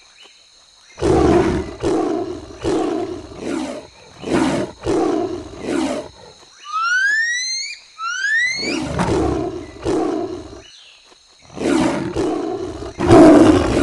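A big cat snarls and growls in short, loud bursts.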